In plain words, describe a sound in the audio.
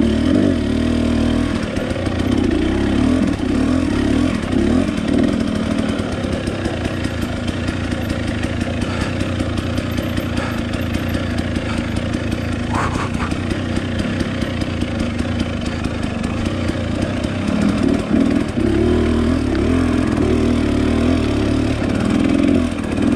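A dirt bike engine putters and revs steadily close by.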